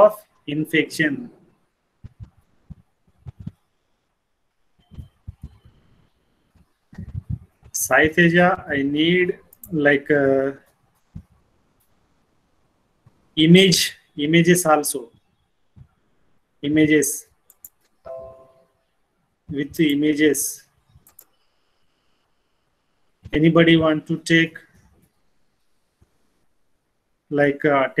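A young man speaks calmly in short phrases through a microphone on an online call.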